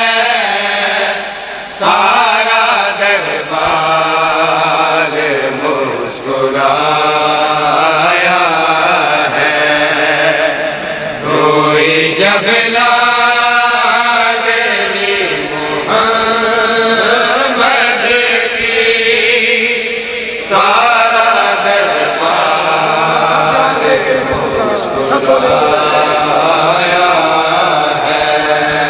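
A young man chants loudly into a microphone in a mournful, melodic voice.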